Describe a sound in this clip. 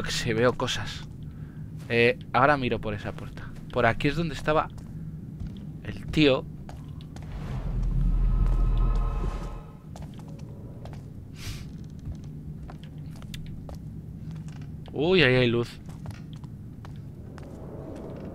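Footsteps walk slowly across a floor.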